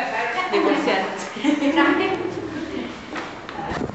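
A woman laughs and talks excitedly close by.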